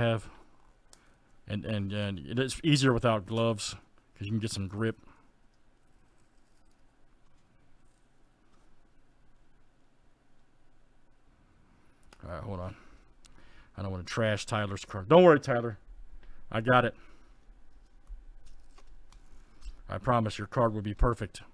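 Paper rustles and crinkles as a card wrapper is peeled open by hand.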